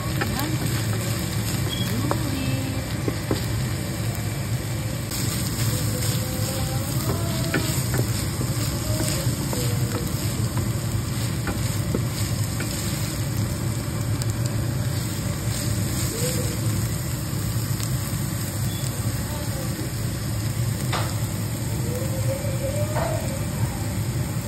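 Ground beef sizzles in a frying pan.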